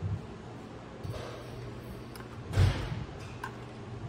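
Metal parts clatter and scrape as a computer panel is lifted out.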